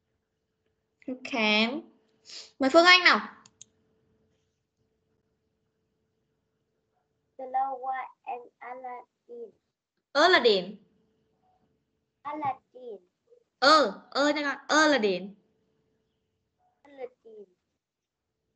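Children speak in short bursts over an online call.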